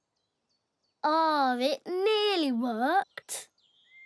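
A man's cartoonish voice speaks cheerfully and with animation, close by.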